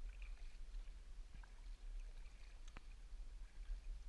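A paddle dips and splashes softly in calm water.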